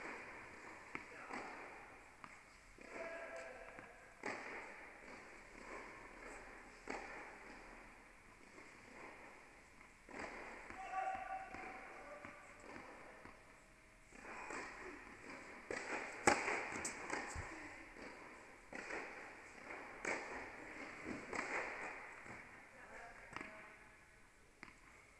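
A tennis ball is struck hard with a racket, echoing in a large hall.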